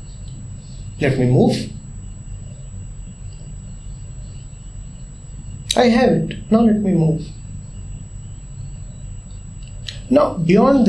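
A man speaks calmly and closely, in short phrases with pauses.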